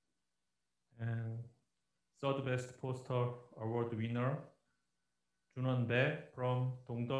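A middle-aged man reads out calmly.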